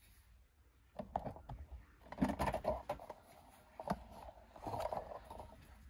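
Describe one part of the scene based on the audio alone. A fingertip scrapes across a rough metal bar.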